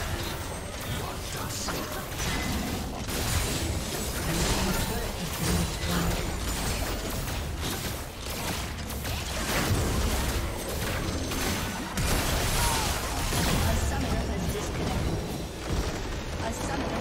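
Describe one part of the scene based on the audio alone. Game spells blast and weapons clash in a busy battle.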